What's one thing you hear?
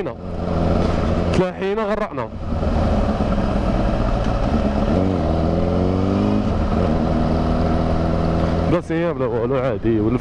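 A motorcycle engine roars steadily, rising and falling in pitch as it revs.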